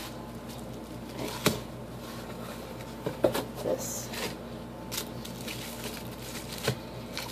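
Foam packaging rustles and taps against a table.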